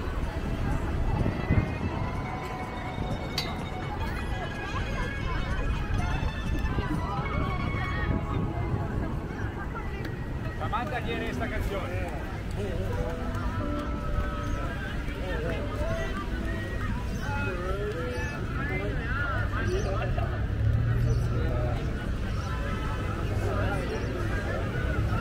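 A crowd of men and women chat and call out nearby, outdoors.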